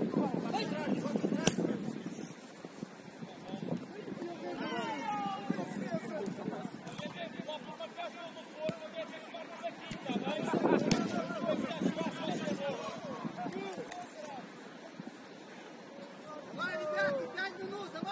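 Young men shout and call to each other across an open pitch.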